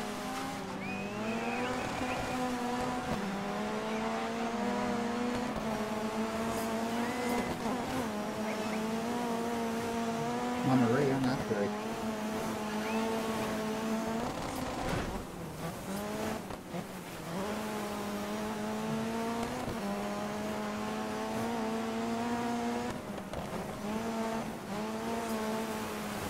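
A rally car engine roars steadily, its pitch shifting with each gear change.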